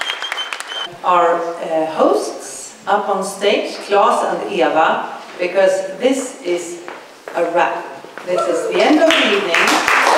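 A woman speaks calmly into a microphone through a loudspeaker.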